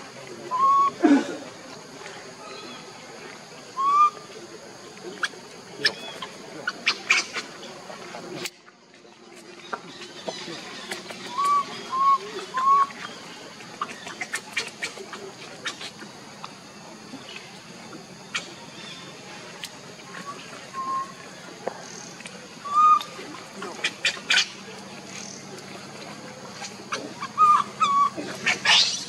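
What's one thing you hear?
A baby monkey squeaks in short, high cries now and then.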